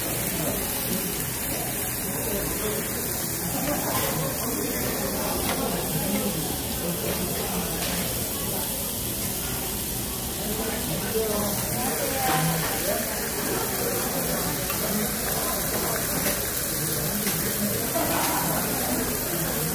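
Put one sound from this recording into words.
Metal tongs clink and scrape against a grill plate.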